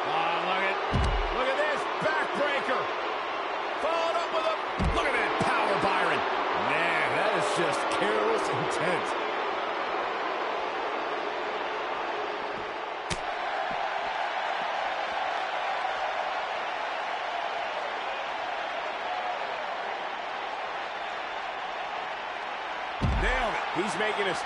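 Heavy bodies slam down with deep thuds.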